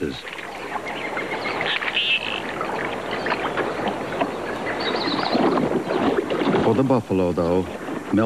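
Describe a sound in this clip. Water sloshes as a large animal wades through it.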